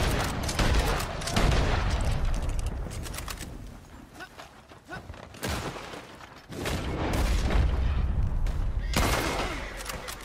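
A rifle fires a sharp shot.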